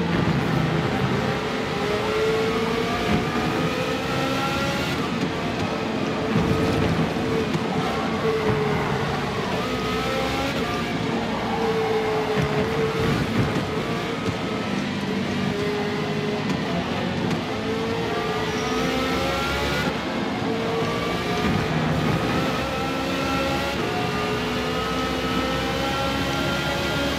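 A race car engine roars and whines, rising and falling in pitch as it shifts gears.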